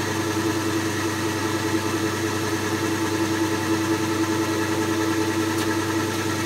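A metal lathe runs with a steady hum.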